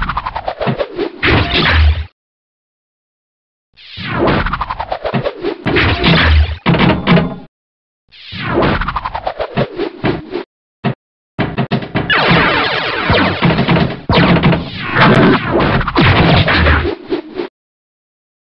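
Pinball game sounds chime, ring and bleep in quick bursts as the ball strikes bumpers and targets.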